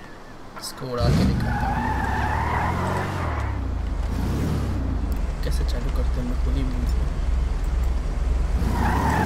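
A car engine idles and revs.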